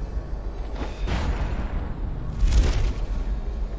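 A sharp magical whoosh rushes past.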